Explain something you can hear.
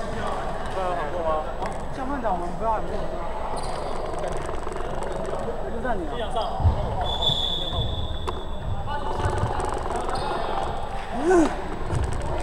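Young men call out to each other in an echoing gym.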